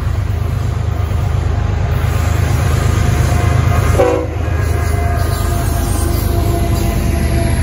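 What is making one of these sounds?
Train wheels clatter and squeal on the rails as the train passes close by.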